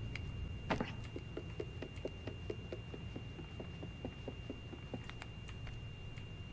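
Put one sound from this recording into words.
Small footsteps patter on a wooden floor.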